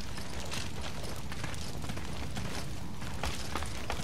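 Hands and feet knock on a wooden ladder while climbing.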